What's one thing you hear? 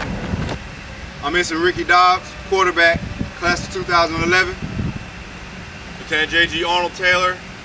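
A group of men speak together in unison.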